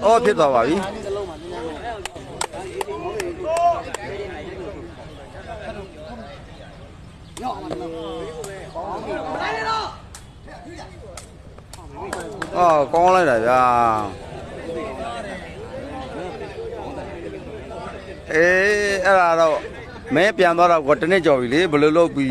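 A crowd of men shouts and cheers loudly outdoors.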